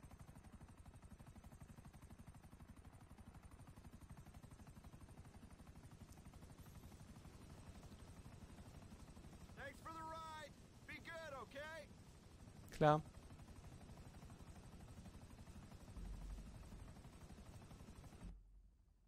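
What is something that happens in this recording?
A helicopter's rotor chops rapidly and steadily.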